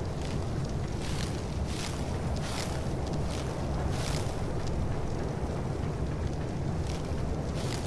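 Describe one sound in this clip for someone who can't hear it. Leafy plants rustle sharply as they are picked by hand.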